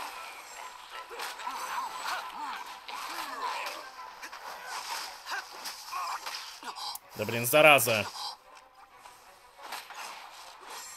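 Sword slashes and magic blasts crack and whoosh in quick bursts.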